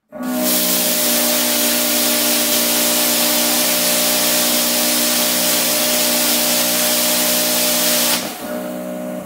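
A welder crackles and hisses loudly as it welds metal.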